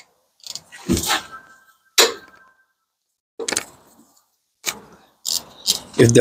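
Metal tools clank and knock against the brake parts.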